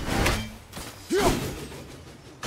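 An axe whooshes through the air and strikes rock.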